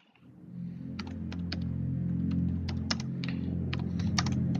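Keyboard keys click in quick, uneven taps.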